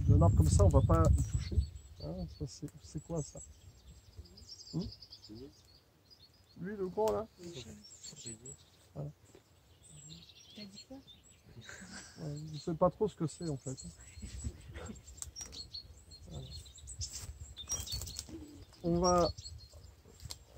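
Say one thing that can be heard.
An elderly man talks calmly close by, outdoors.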